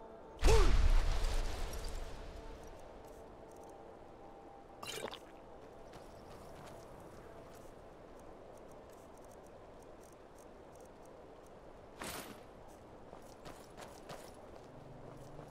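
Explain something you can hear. Footsteps crunch on stone and snow.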